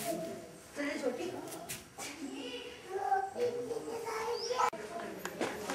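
An elderly woman speaks with animation nearby.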